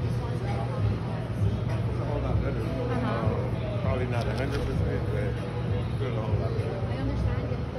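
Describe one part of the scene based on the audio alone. A man talks and laughs cheerfully close by.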